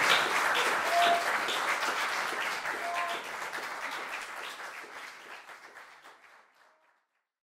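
An audience applauds in a hall and the clapping fades away.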